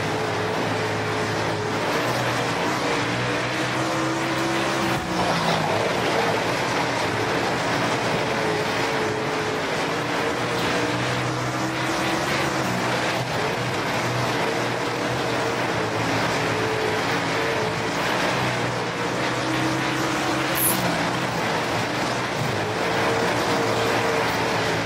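Tyres skid and scrape on loose dirt.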